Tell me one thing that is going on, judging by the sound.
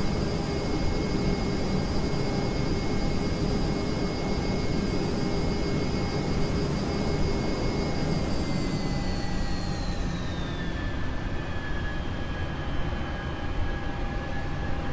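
A jet engine roars steadily with a high whine that drops in pitch.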